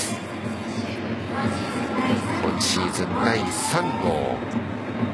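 A crowd murmurs in a large indoor stadium.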